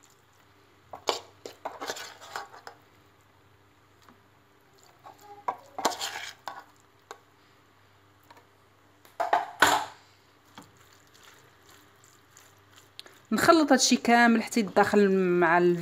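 A wooden spoon scrapes and taps against a frying pan.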